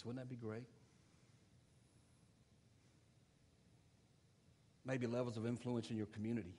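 An elderly man speaks calmly through a microphone, pausing between phrases.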